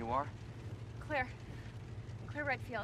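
A young woman speaks warmly.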